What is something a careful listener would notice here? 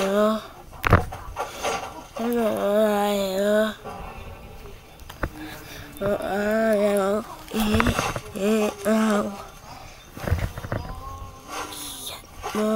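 A person speaks with animation close to a microphone.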